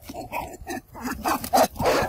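Small animals scamper quickly through grass.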